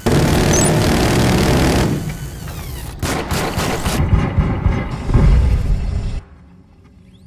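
A heavy gun fires in loud rapid bursts.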